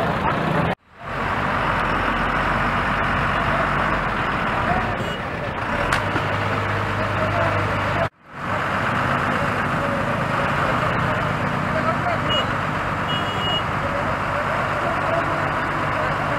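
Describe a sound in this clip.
Motorbike engines idle and rumble nearby.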